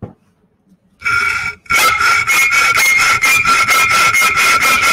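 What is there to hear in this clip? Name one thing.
A hacksaw cuts through metal with fast, rasping, ringing strokes.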